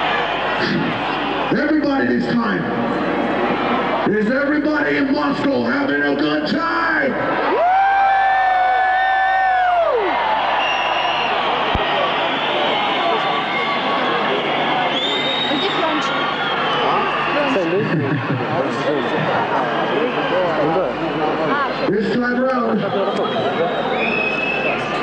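A band plays loud music through loudspeakers.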